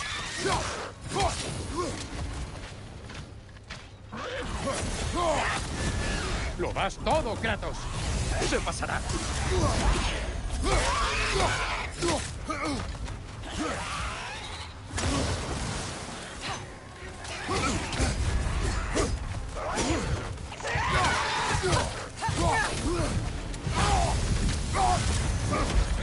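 Heavy weapons strike and thud in a fierce fight.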